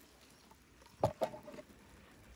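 Metal clanks briefly against metal.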